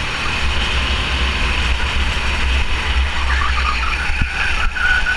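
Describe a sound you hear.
Other go-kart engines whine nearby.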